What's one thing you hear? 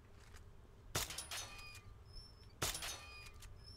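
A pistol fires twice with sharp, ringing shots.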